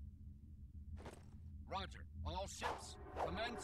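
A man shouts commands.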